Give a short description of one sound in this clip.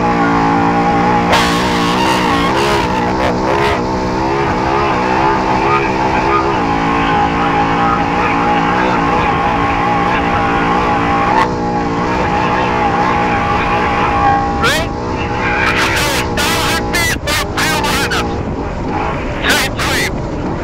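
A vehicle's engine roars steadily as it drives fast over a rough dirt road.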